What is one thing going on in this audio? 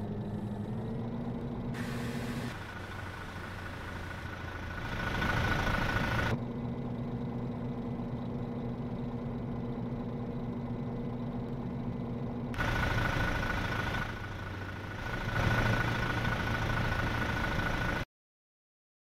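A bus engine hums and drones steadily as the bus drives along.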